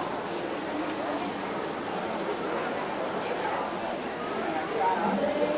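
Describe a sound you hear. A large crowd of men and women chatters all around in an echoing hall.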